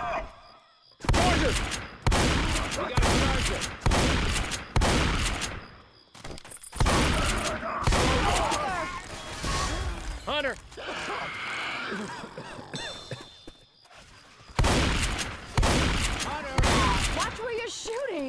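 A shotgun fires in loud, booming blasts.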